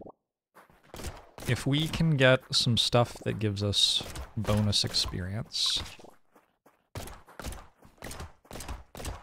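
Small guns fire rapid shots in a video game.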